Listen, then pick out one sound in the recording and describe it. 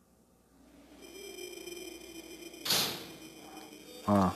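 A heavy door creaks open slowly.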